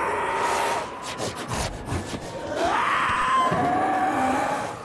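A creature growls and snarls close by.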